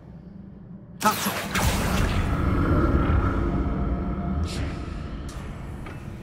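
A magic spell whooshes and rings as a lamp lights up.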